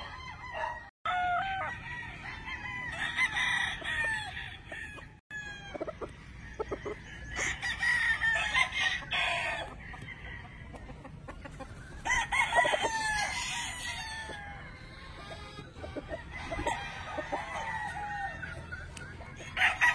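A rooster clucks nearby.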